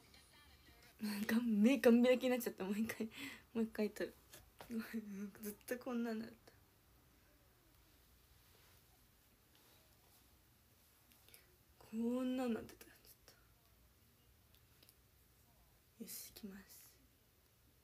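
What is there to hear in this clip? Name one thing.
A young woman speaks close to a microphone, brightly and casually, in short bursts.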